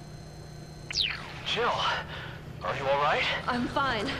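A man speaks through a radio.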